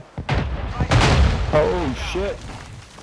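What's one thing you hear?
An explosion bursts close by with a loud roar.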